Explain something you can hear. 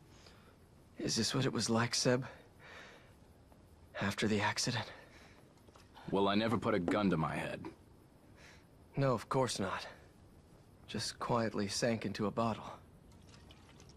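A young man speaks calmly and quietly.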